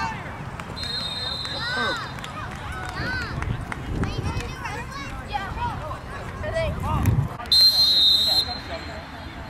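A referee blows a whistle in short shrill blasts.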